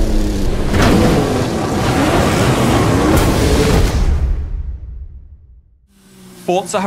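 A car engine roars loudly and then fades away.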